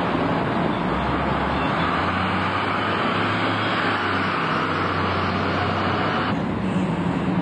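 A bus engine revs as the bus pulls away.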